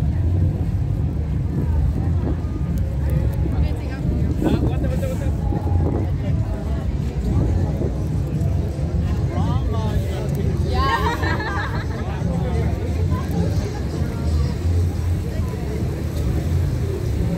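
A crowd of people chatters outdoors on a street.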